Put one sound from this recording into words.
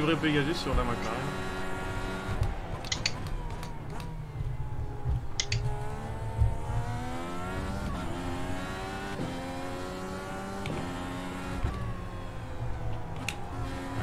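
A racing car engine revs up and down through gear changes.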